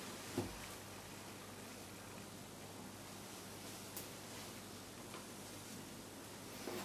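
Metal surgical instruments click and clink now and then.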